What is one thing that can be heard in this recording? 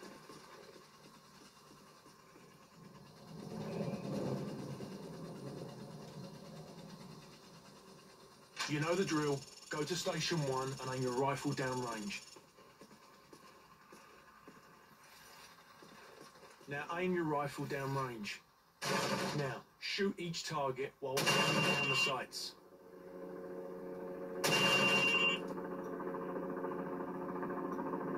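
Video game sounds play from a television.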